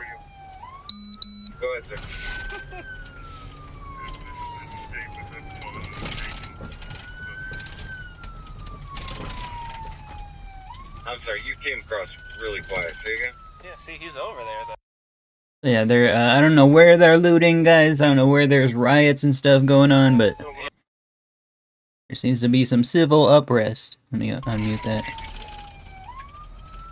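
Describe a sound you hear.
A siren wails, rising and falling repeatedly.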